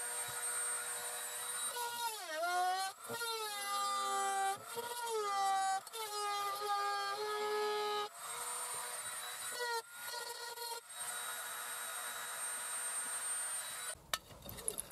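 A small rotary tool whines at high speed, its pitch dipping and rising as it grinds.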